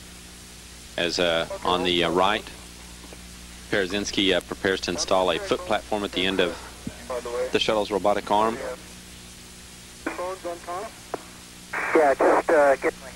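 A man speaks calmly over a radio link, in short bursts.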